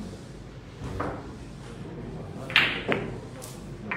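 Billiard balls knock against each other and clack.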